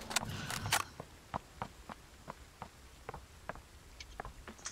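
Footsteps tap lightly and regularly.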